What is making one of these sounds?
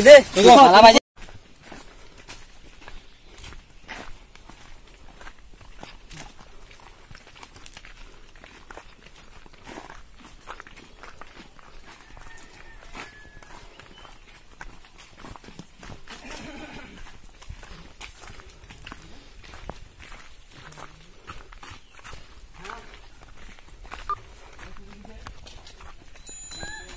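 Footsteps crunch on a dirt path outdoors.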